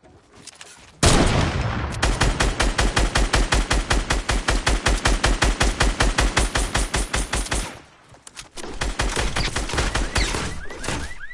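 A gun fires rapidly in long bursts of shots.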